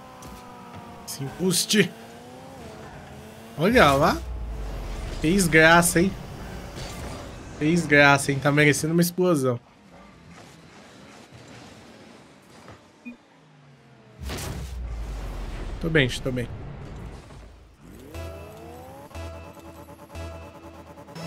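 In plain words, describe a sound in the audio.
A car engine hums in a video game.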